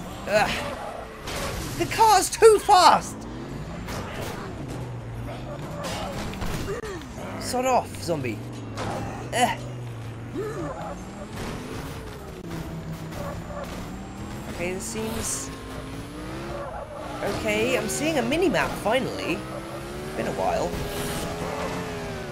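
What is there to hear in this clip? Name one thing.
A car engine revs and whines, rising and falling in pitch.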